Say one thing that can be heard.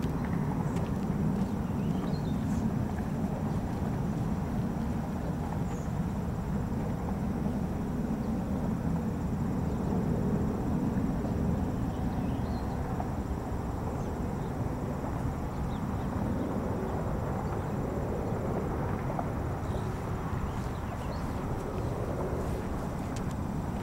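Wind blows steadily outdoors, rumbling low.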